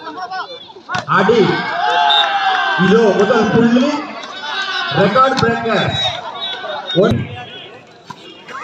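Men shout loudly and excitedly outdoors.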